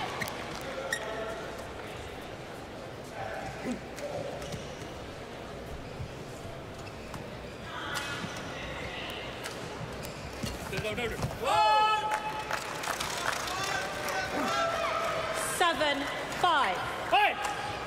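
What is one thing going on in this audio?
A large indoor crowd murmurs and cheers in an echoing hall.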